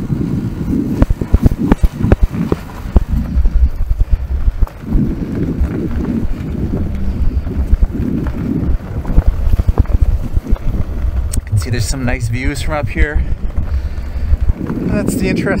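Bicycle tyres crunch and rattle over gravel.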